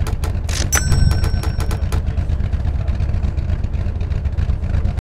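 A car engine rumbles low and steadily.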